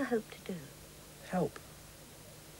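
A young man speaks quietly and briefly up close.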